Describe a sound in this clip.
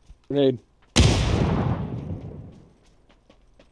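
A loud explosion booms nearby and rumbles away.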